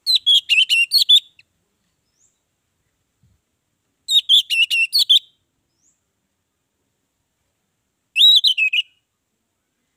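An orange-headed thrush sings in short bursts of song.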